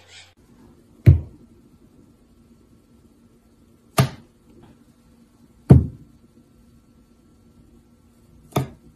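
A small parrot knocks its beak sharply against a wooden drawer.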